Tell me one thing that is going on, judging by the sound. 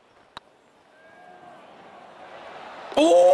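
A crowd murmurs and cheers, growing louder.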